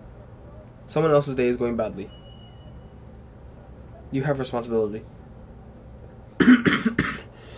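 A young man speaks calmly and close by, in short bursts with pauses.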